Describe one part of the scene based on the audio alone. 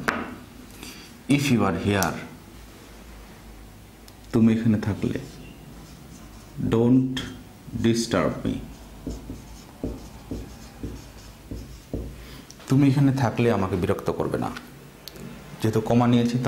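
A man speaks slowly and clearly, as if teaching, close by.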